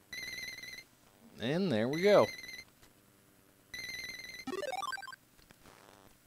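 Electronic game beeps and warbling jingles play in short bursts.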